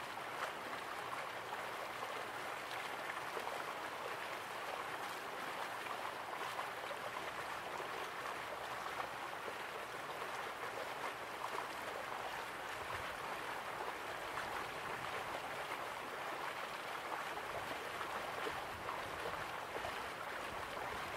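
A small waterfall splashes steadily into a pool.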